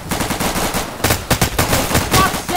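Rifle shots crack in quick bursts close by.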